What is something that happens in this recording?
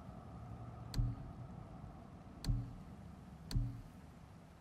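Menu clicks sound in quick single taps.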